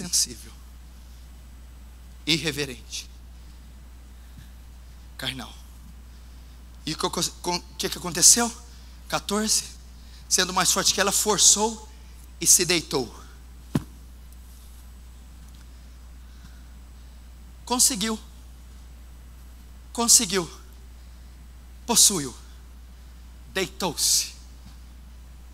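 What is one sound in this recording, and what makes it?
A man preaches with animation through a microphone, in short bursts with pauses, in an echoing hall.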